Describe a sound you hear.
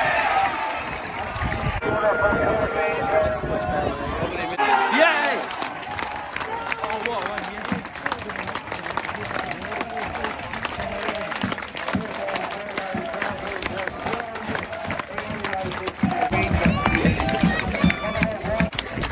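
A crowd of football fans cheers and shouts outdoors.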